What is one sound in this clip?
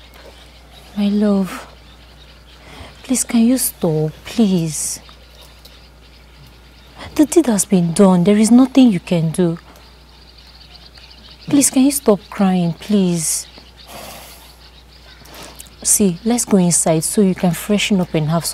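A young woman speaks earnestly close by, pausing between phrases.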